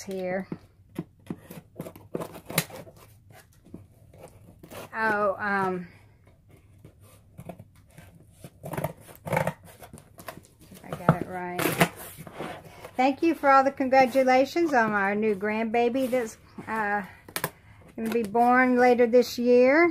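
Hands rustle and tap against a cardboard box.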